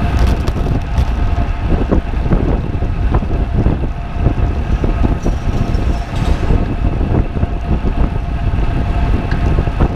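A bicycle chain whirs steadily.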